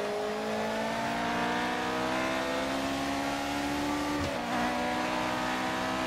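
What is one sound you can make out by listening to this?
A racing car engine roars at high revs, rising slowly in pitch.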